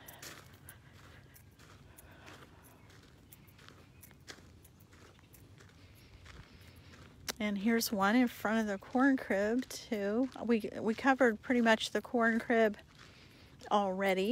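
Footsteps crunch softly on wood chips.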